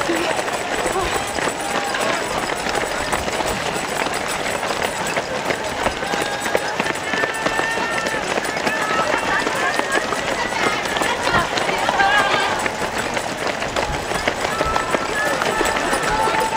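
Many running shoes patter on pavement close by.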